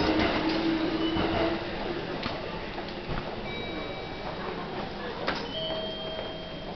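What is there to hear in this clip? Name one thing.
Footsteps tap and echo through a large hard-walled hall.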